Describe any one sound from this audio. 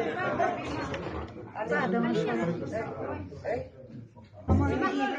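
Several men talk at once nearby in a crowd.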